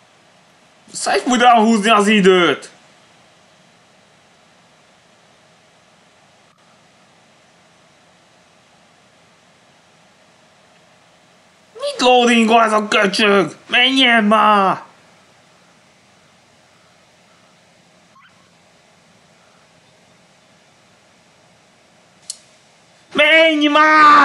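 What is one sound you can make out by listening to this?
A young man speaks in short bursts, heard through a computer microphone.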